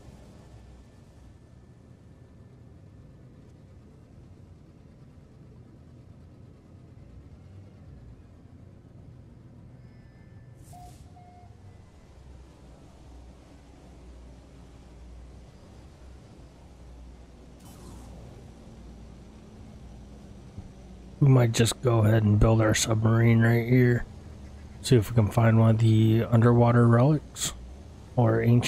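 A spaceship engine hums low and steadily.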